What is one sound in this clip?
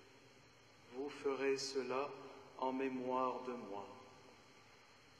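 A man chants briefly through a microphone in a large echoing hall.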